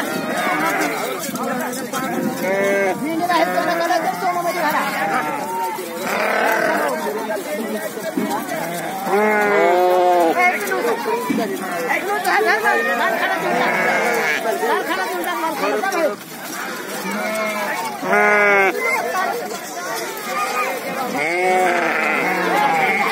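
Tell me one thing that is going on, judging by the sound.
A crowd of men chatters in the background outdoors.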